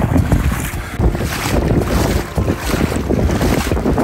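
Water splashes around wading legs.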